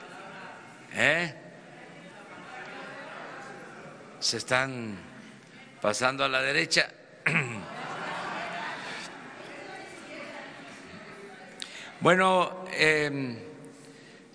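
A man speaks through loudspeakers in a large echoing hall, in short phrases with pauses.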